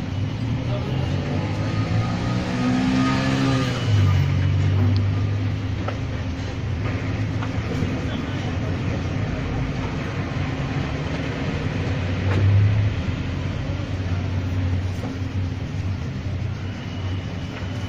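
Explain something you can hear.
A cloth rubs and buffs a leather shoe.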